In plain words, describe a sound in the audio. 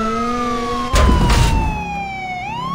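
A car bumps into a truck with a loud thud.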